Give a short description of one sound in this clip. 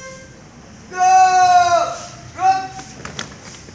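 A woman loudly calls out a command outdoors.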